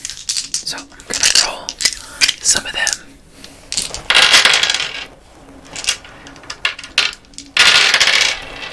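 A small plastic object crinkles and clicks close to a microphone.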